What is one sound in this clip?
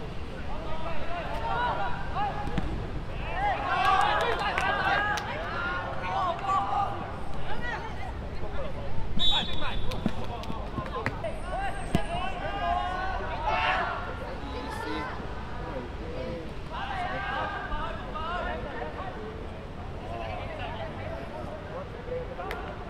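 Children shout and call to each other outdoors across an open field.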